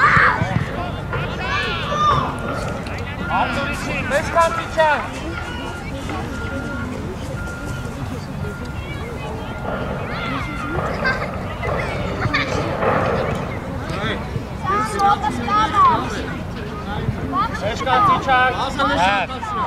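Young boys shout to each other across an open field.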